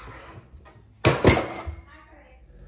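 A cup drops into a plastic trash bin with a clatter.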